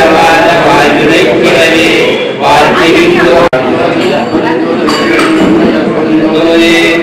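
A man chants loudly through a microphone, leading the group.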